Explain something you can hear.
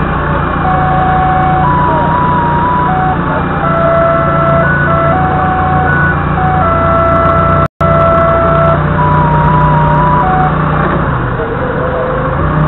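A forklift engine rumbles steadily close by.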